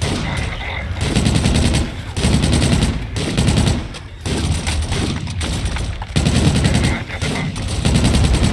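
A heavy gun fires in loud, rumbling bursts.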